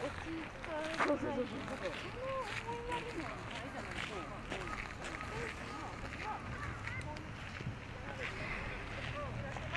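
A crowd of men and women chat in the open air.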